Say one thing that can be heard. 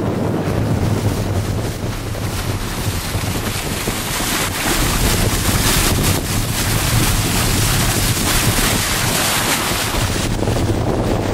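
Water rushes and splashes loudly against a boat's hull.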